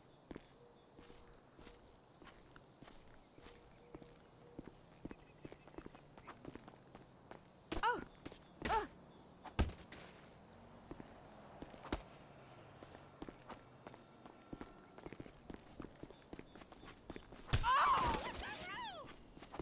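Footsteps run on a hard track and grass.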